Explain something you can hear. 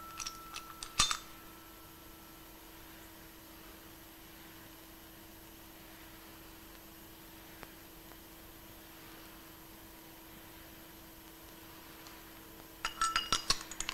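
Metal keys jingle and clink close by.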